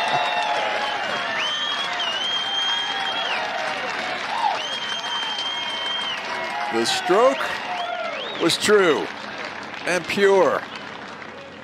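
A crowd cheers, whistles and applauds outdoors.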